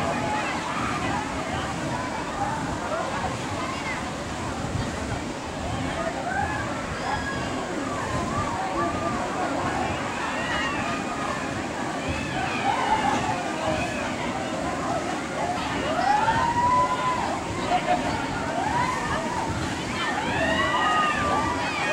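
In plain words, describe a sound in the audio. Waves from a wave pool crash and splash against a concrete wall.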